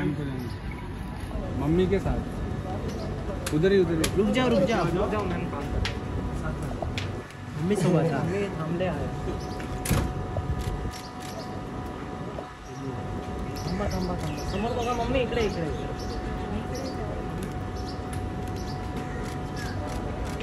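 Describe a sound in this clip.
Several men and women call out and talk at once nearby, outdoors.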